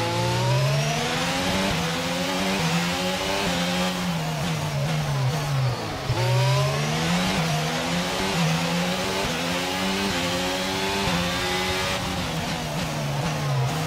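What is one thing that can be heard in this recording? A racing car engine screams, rising and falling in pitch as gears shift.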